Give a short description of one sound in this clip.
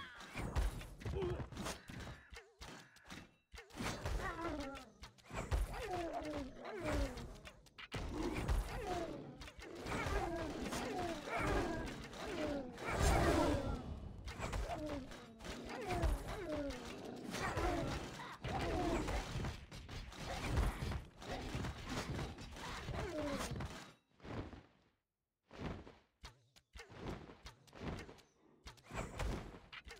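Towers fire shots in quick bursts.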